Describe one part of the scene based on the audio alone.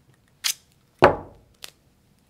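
A roll of tape thuds down on a table.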